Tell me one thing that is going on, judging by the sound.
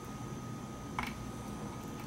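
A metal lock mechanism clicks as a dial turns.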